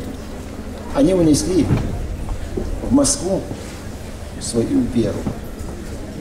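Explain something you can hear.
An elderly man speaks slowly and solemnly into a microphone, heard through loudspeakers outdoors.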